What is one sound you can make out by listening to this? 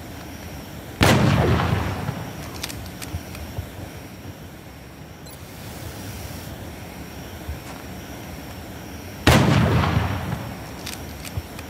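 A rifle fires a loud blast that rumbles and fades.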